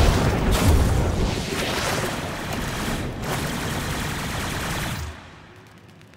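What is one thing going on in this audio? Heavy blows clash against metal with crackling sparks.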